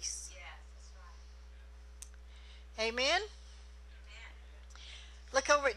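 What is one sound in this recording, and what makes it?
A middle-aged woman speaks with feeling into a microphone, in short bursts with pauses.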